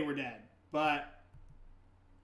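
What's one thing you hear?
A young man speaks briefly and casually into a microphone, close up.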